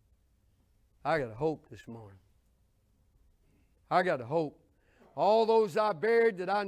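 An older man speaks with animation through a microphone, in short bursts with pauses.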